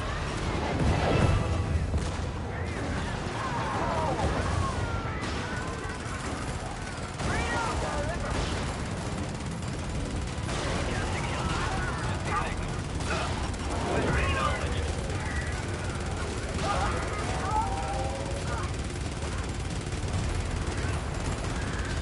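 Fire roars steadily.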